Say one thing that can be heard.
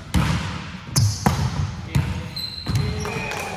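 Shoes squeak on a gym floor.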